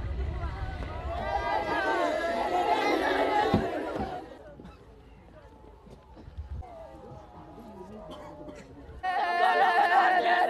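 Women wail and lament loudly outdoors.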